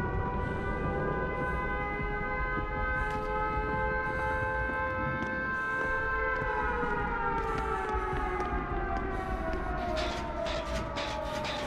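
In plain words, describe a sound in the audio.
Footsteps hurry across a hard floor and up stairs.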